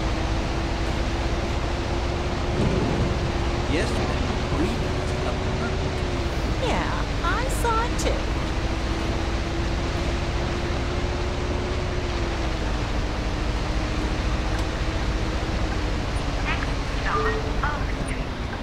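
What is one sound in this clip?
Rain patters steadily on a bus.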